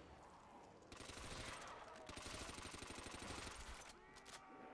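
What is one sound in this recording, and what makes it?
Gunshots ring out from a video game.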